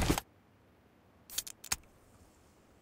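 A can is opened.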